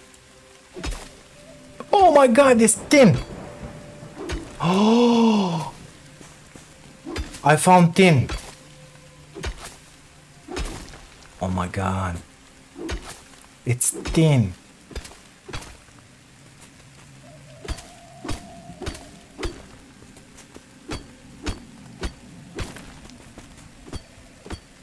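A pick strikes rock with repeated sharp knocks.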